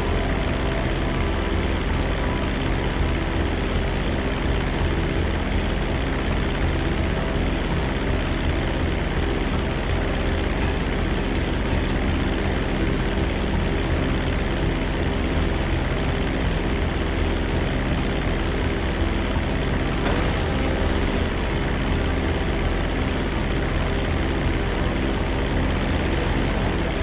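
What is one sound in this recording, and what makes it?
A propeller plane's engine drones steadily and loudly.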